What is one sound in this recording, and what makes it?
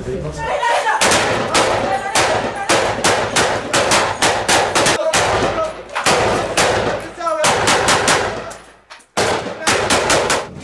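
Rifles fire in rapid bursts, loud and close, with sharp echoes.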